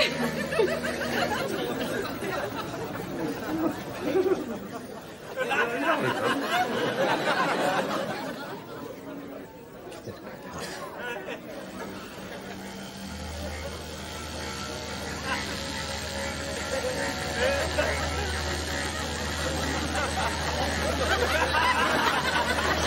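A crowd of people chatters and murmurs in a busy room.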